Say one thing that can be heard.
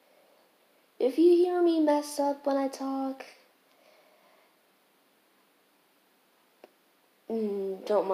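A girl speaks close to a microphone, in a high, sing-song voice.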